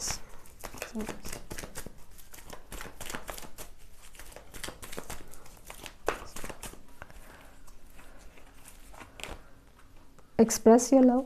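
Playing cards riffle and flutter as they are shuffled.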